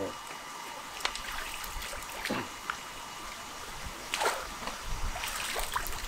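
Water splashes as a man wades and lifts a net trap.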